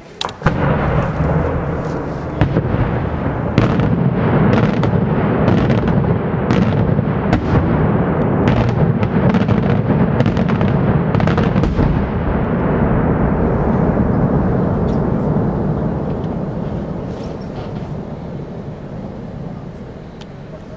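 Firework crackle rumbles on and slowly fades away.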